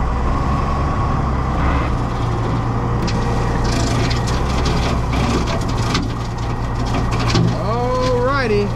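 A rotary mower cuts through dry grass and brush.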